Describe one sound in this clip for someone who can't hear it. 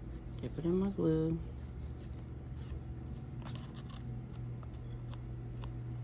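A paintbrush spreads glue on cardstock.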